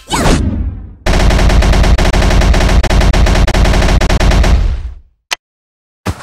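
A magic blast roars and crackles loudly.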